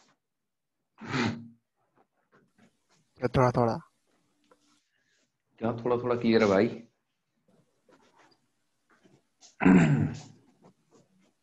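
A man explains calmly in short phrases.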